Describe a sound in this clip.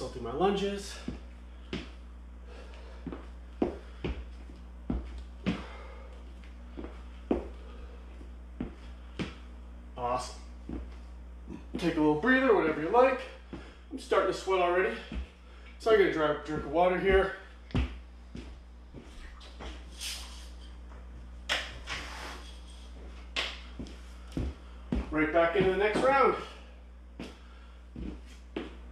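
Sneakers thump and squeak on a hard floor as a man steps and hops.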